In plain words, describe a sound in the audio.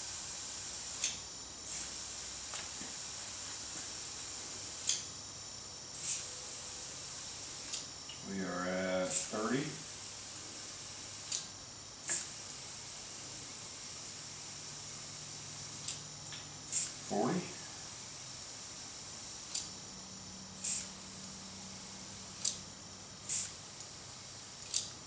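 Metal taps and clicks sharply as a tyre is worked onto a wheel rim.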